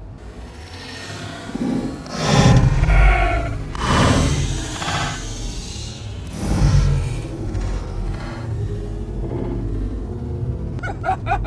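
Foam cushions and bedding rustle and thump as they are moved about.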